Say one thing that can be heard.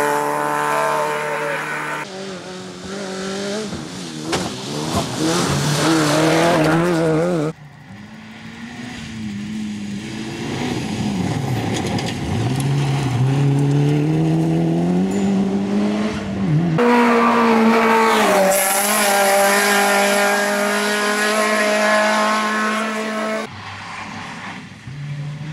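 A rally car engine roars and revs hard as cars race past.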